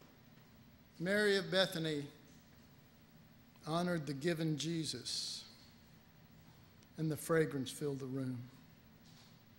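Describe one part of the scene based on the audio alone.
An elderly man speaks slowly into a microphone in a room, with pauses between phrases.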